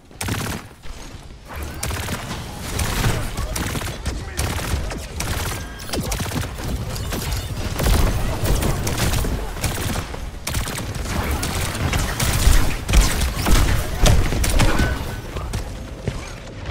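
Gunfire and energy blasts crackle and boom in a video game.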